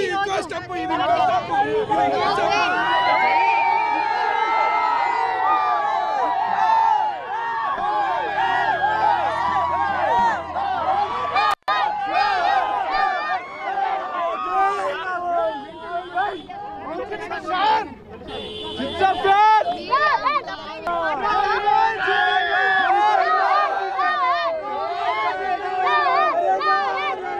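A crowd chatters and cheers loudly all around.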